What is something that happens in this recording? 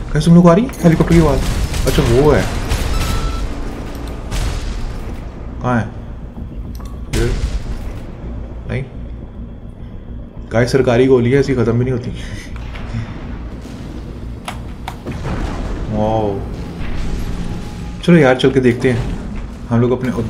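Gunfire and explosions boom from a game.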